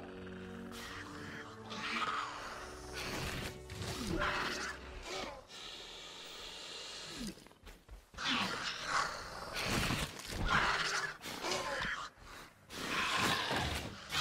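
Dinosaurs screech and roar.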